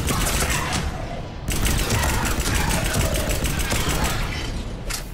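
Rapid gunshots fire in a quick burst.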